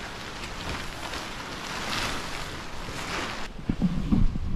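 Wind flutters a sail.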